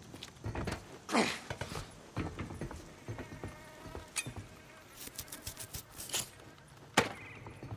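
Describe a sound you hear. A man's hands and boots clang and thud on a metal panel while climbing.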